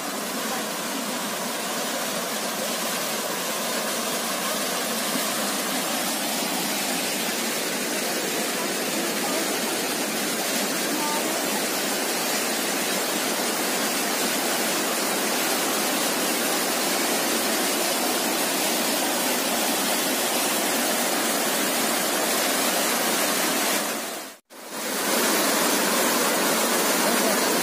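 A cascading waterfall roars.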